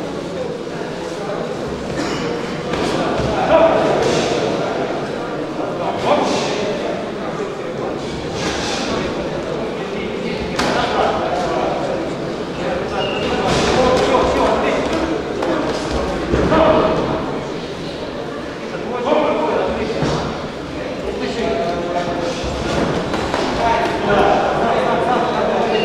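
A crowd in a large echoing hall shouts and cheers throughout.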